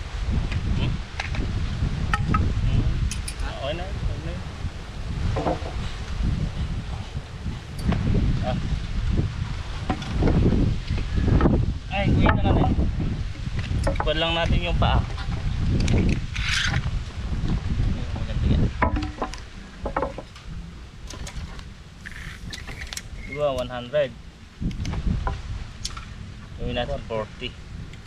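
A man talks with animation up close, outdoors.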